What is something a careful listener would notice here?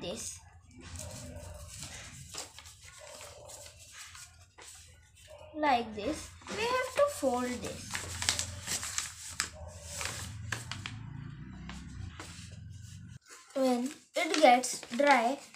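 Paper rustles and crinkles as it is folded by hand.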